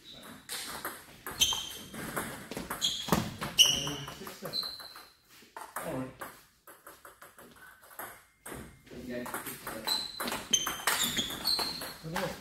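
A ping-pong ball clicks back and forth on paddles and a table in a rally.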